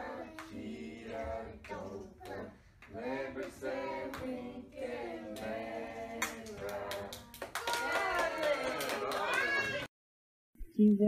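Young children sing together.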